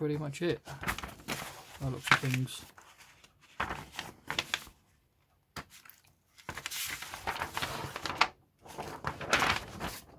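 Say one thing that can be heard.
Paper pages of a booklet rustle and flap as they are turned.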